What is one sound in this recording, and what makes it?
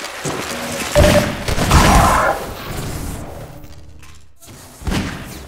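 A deep whooshing rush swells and fades.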